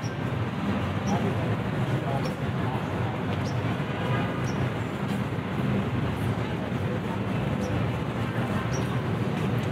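City traffic rumbles steadily in the distance outdoors.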